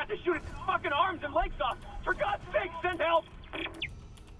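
A man speaks urgently through a crackling radio recording.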